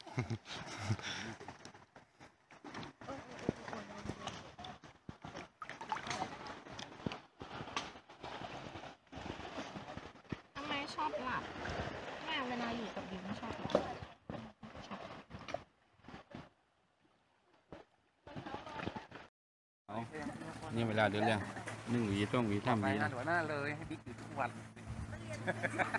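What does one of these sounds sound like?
Water sloshes and splashes around people wading.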